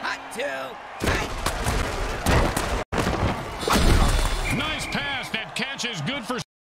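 Armoured players collide with heavy thuds.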